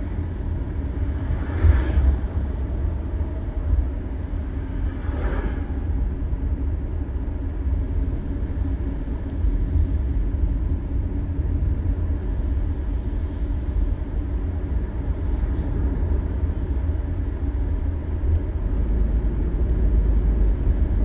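A car drives along, with a low road rumble heard from inside.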